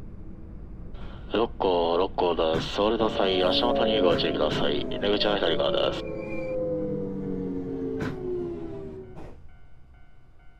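Train brakes squeal loudly and slowly drop in pitch as the train comes to a stop.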